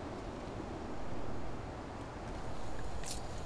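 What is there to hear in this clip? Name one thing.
Coins clink in a hand.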